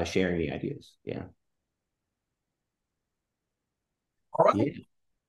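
A man speaks briefly over an online call.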